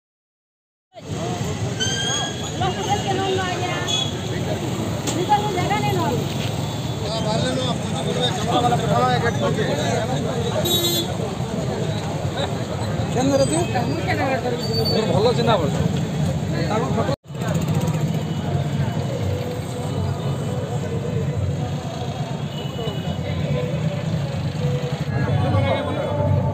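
A crowd of men chatters loudly nearby, outdoors.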